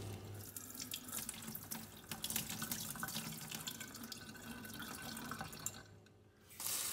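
Tap water runs and splashes into a bowl of beans.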